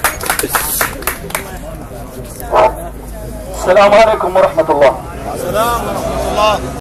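A crowd of people talks and chants nearby outdoors.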